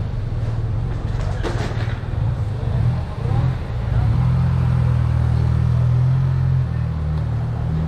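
A motor scooter's engine hums close by and moves off.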